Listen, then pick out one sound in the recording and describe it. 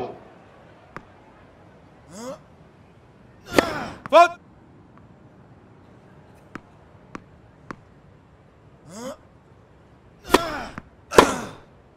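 A tennis ball is struck sharply by a racket.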